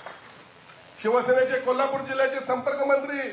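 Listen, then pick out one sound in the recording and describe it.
A man speaks loudly and forcefully through a microphone.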